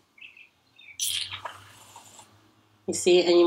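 Foam hisses out of a can in a short spray.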